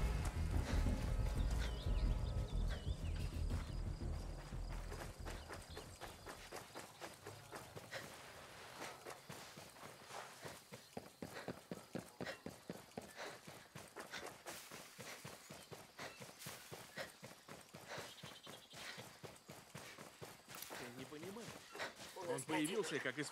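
Footsteps crunch quickly over grass and dirt.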